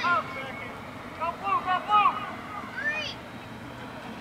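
Young men shout to each other from a distance across an open outdoor field.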